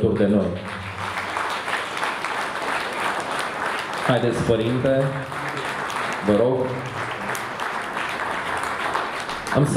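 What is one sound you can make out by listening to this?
A man speaks into a microphone through loudspeakers in an echoing hall.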